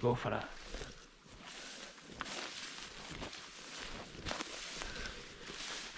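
Wind blows through long grass outdoors.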